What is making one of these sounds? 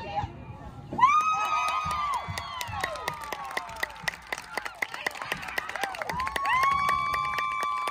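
Young women scream and cheer loudly outdoors.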